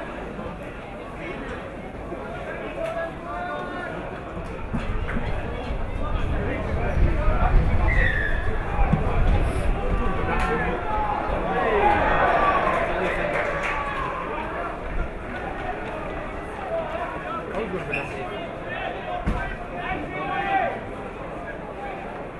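Adult men among nearby spectators shout and cheer outdoors.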